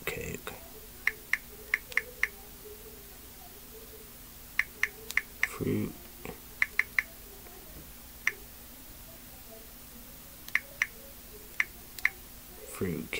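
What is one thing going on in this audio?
Small items click and tap in a young man's hands.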